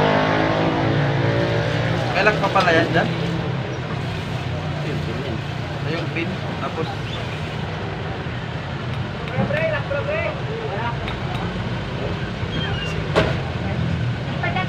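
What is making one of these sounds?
Small metal parts click and scrape close by.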